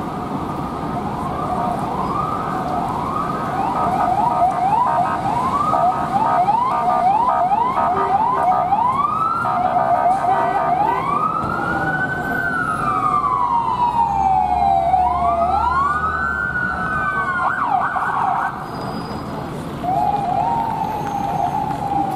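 Police sirens wail and whoop loudly, rising and falling, outdoors.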